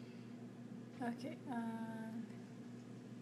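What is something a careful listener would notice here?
A woman says a few words briefly, close by.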